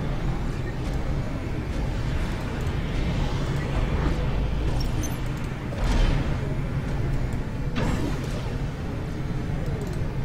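Laser weapons fire with sharp electronic zaps.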